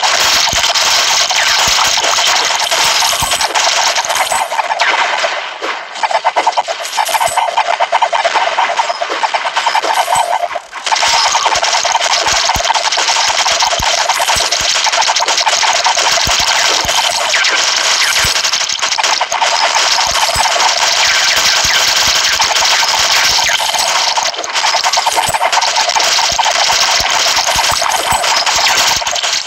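Rapid shooting effects and hit sounds crackle.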